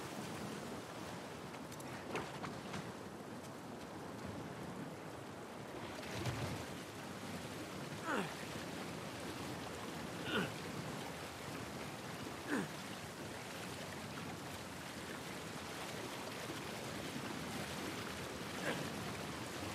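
A river rushes and splashes steadily.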